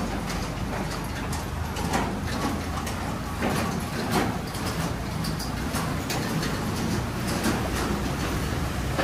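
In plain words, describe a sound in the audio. Floodwater rushes and splashes steadily outdoors.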